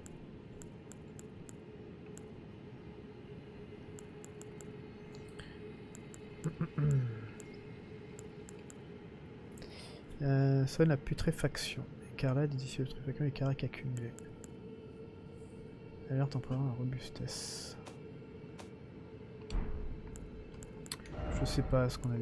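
Soft menu clicks tick as items are browsed.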